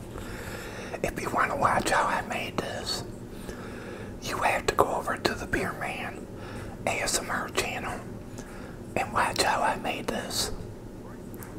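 An older man speaks softly, close to the microphone.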